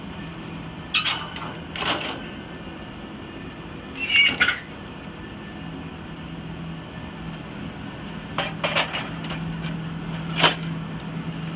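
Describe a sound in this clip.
Plastic and metal parts clack and knock.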